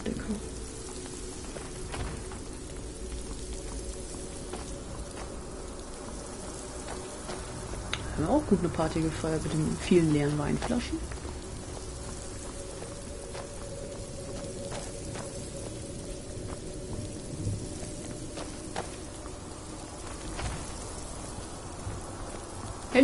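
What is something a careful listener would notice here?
Footsteps thud softly on a stone floor.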